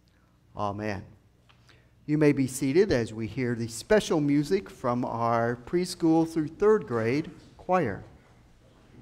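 An elderly man speaks clearly into a microphone in an echoing room.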